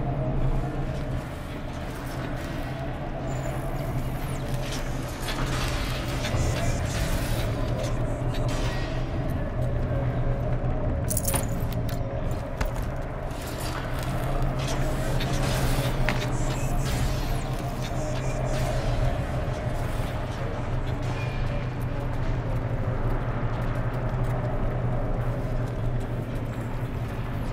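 Footsteps tread over hard ground.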